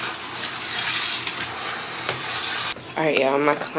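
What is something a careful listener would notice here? Water runs from a sprayer into a sink.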